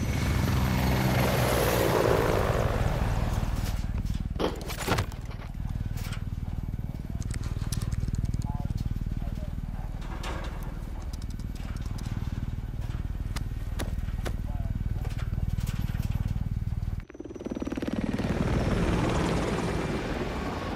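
Helicopter rotor blades thump loudly and steadily.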